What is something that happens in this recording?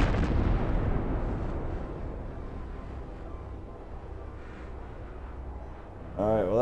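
Fiery debris crackles and hisses as it falls.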